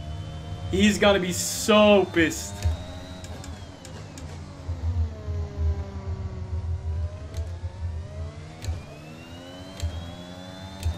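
A racing car engine whines steadily, rising and falling in pitch as it shifts gears.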